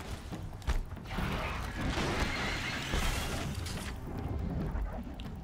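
Wind howls through a snowy landscape.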